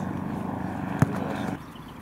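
A football is kicked hard with a thud.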